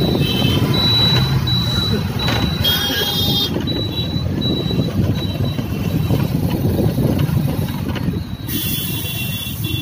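A motorbike engine drones past close by.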